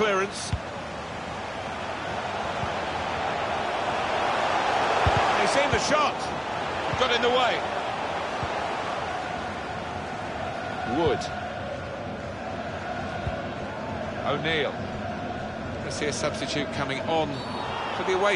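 A stadium crowd roars steadily, swelling and easing.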